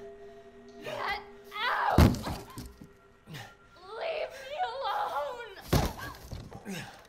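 A young woman screams.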